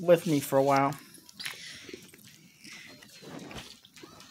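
A middle-aged woman chews food.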